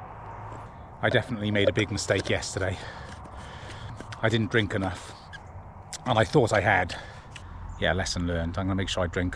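A middle-aged man talks calmly close to the microphone, outdoors.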